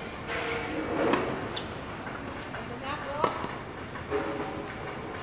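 A tennis racket strikes a ball on an outdoor court.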